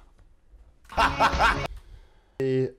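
A young man laughs loudly into a microphone.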